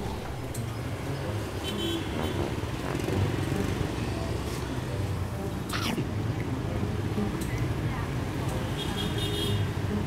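A spoon and chopsticks clink against a bowl.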